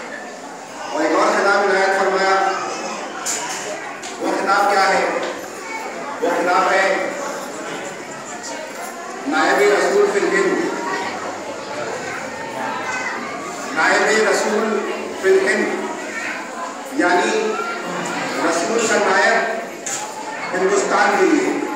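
A man chants loudly into a microphone, heard through a loudspeaker with echo.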